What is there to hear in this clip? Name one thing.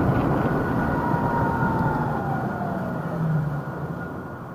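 An electric scooter motor whines and drops in pitch as it slows.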